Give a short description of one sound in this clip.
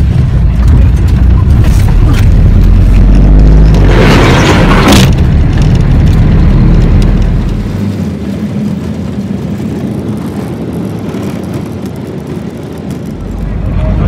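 A vehicle engine rumbles low and steady from inside.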